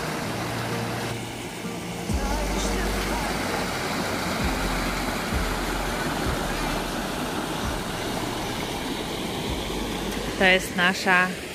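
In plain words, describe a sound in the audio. Water rushes and splashes over rocks nearby.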